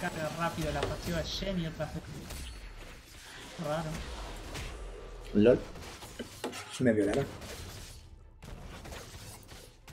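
Weapons clash and spells burst in a fantasy battle.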